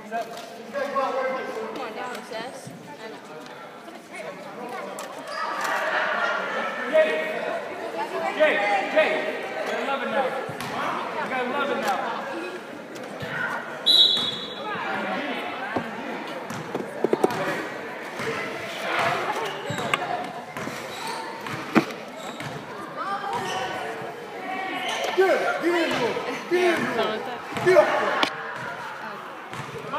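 Young spectators chatter and call out in an echoing gym.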